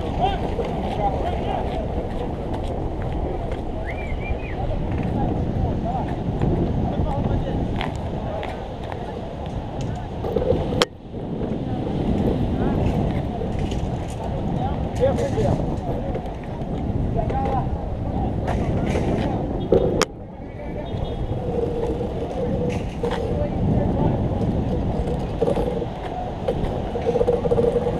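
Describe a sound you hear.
Wind buffets a microphone outdoors, rumbling steadily.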